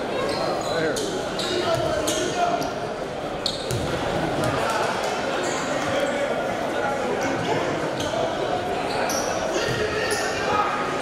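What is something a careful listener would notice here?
Basketball sneakers squeak on a hardwood court.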